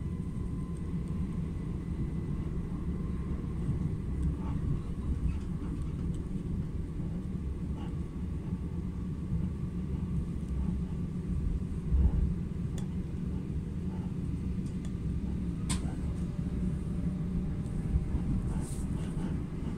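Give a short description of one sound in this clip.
Wheels clatter and click on the rails.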